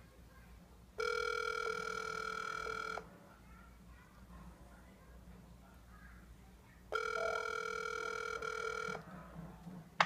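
A phone gives a steady electronic tone twice.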